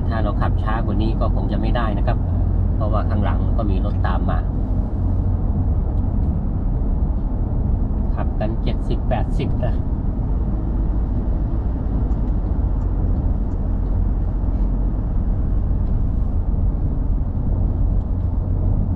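A car's engine hums and tyres roll steadily over the road, heard from inside the car.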